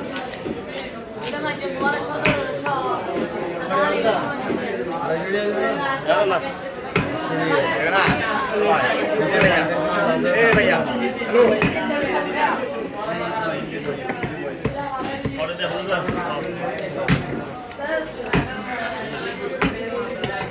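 A heavy knife chops into a wooden block.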